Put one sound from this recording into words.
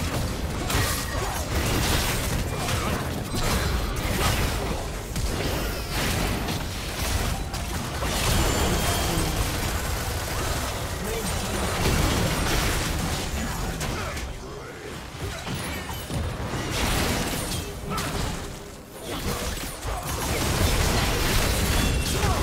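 Magic blasts and hits crackle and boom in a hectic battle.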